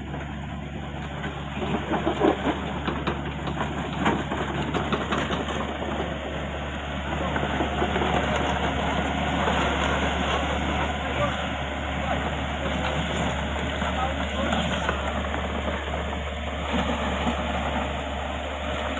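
A small crawler excavator's diesel engine runs.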